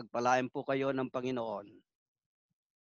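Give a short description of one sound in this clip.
An elderly man speaks calmly through a headset microphone on an online call.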